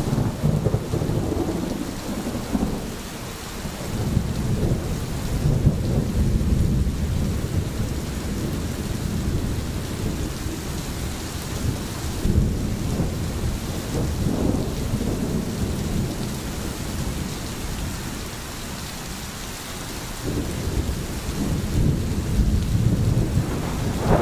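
Steady rain patters down outdoors.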